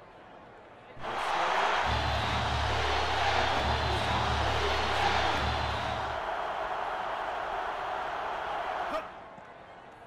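A stadium crowd roars and cheers loudly.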